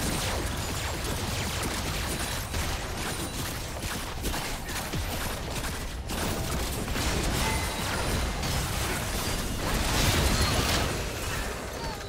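Video game combat effects crackle, whoosh and burst in quick succession.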